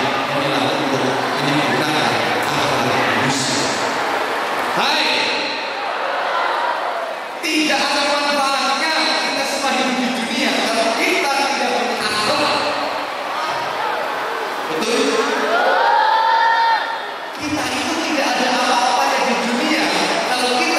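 A man speaks with animation through a handheld microphone in a large echoing hall.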